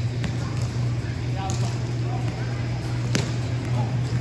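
A ball thuds sharply as players hit it off a small net.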